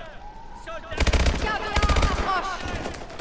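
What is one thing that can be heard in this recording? A rifle fires rapid bursts of loud shots close by.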